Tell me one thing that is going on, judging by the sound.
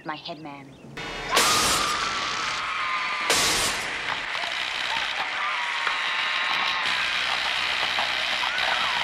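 Fireworks crackle and hiss loudly, with sharp bangs.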